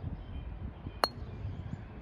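A putter taps a golf ball with a sharp click.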